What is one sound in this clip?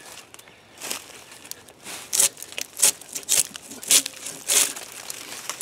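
A hand saw cuts back and forth through a log.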